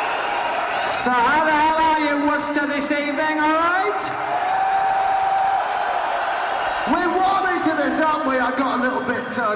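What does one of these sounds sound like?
A man shouts to the audience through a microphone and loudspeakers in a large echoing arena.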